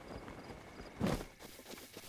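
A character lands with a soft thump on grass.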